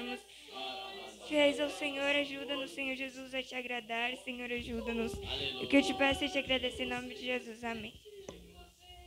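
A young woman speaks into a microphone over a loudspeaker.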